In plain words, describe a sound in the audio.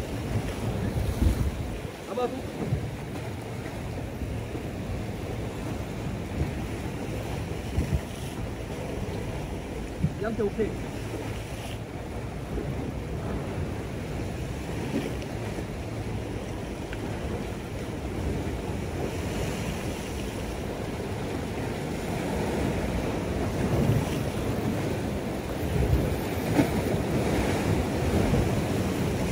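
Waves wash against rocks nearby.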